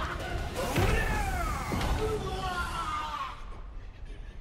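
A loud explosion booms and shatters debris.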